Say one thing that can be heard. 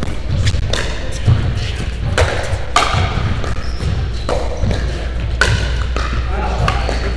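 Paddles pop sharply against a plastic ball in a quick rally, echoing in a large indoor hall.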